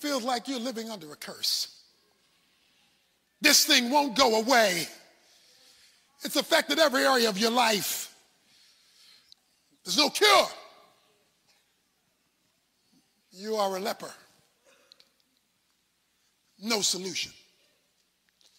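A man preaches forcefully into a microphone in short bursts with pauses.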